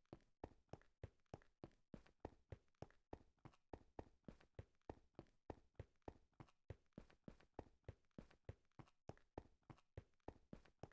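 Quick footsteps crunch steadily on rough stone.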